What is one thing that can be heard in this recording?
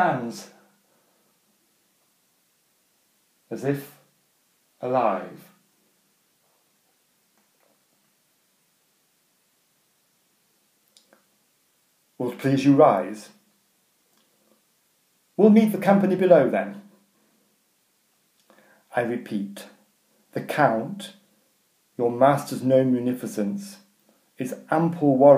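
A middle-aged man speaks close to the microphone in short bursts, with animation.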